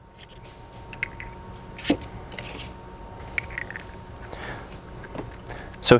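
Small metal tool parts click and clink together.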